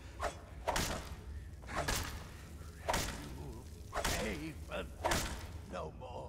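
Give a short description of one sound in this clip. A blade strikes a body again and again with heavy, wet thuds.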